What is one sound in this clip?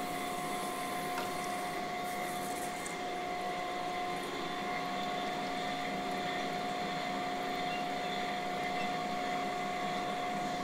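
A grinding machine hums steadily.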